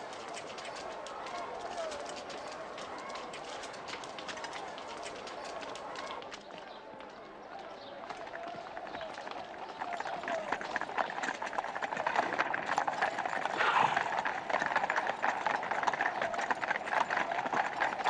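Many footsteps shuffle and tramp on stone.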